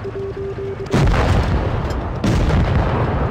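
Tank guns fire with loud booms.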